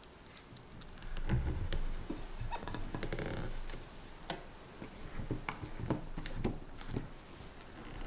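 A spatula scrapes and folds batter in a glass bowl.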